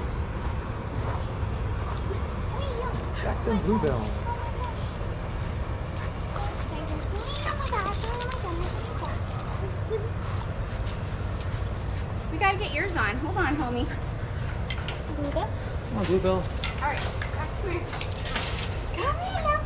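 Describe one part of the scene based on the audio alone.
A woman talks to dogs close by.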